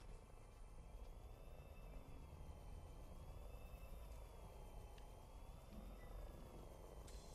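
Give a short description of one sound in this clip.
A small drone hums steadily overhead.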